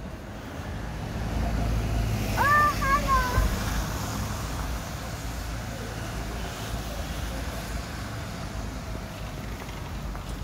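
A van drives slowly past on a wet street.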